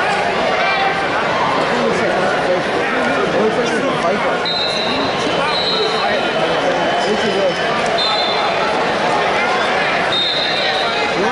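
A large crowd chatters throughout an echoing arena.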